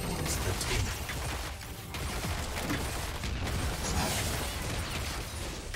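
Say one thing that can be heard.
Game battle sound effects clash and burst in quick succession.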